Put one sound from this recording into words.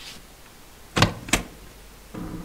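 A door latch clicks.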